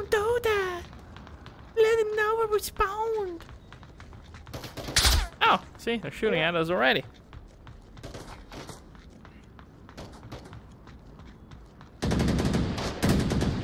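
Footsteps tap quickly on hard pavement.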